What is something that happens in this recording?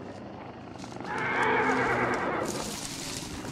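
Leafy bushes rustle as someone pushes through them.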